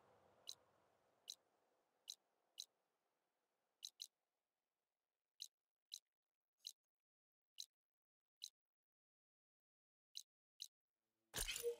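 Short soft clicks tick now and then.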